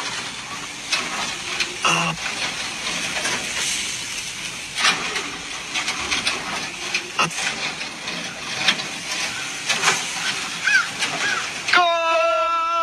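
Sausages sizzle and crackle on a hot grill.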